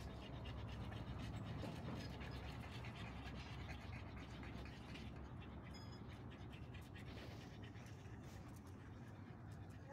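A small dog's paws patter softly on paving stones.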